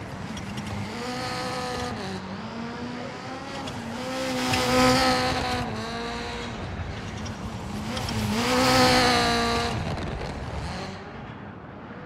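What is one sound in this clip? A rally car engine revs hard, rising and falling as it passes.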